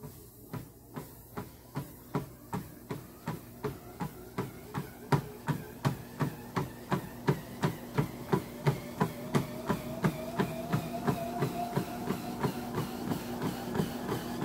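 A treadmill motor hums and whines, rising in pitch.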